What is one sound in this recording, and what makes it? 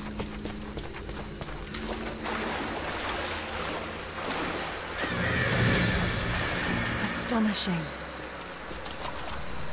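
Footsteps tread on rough ground.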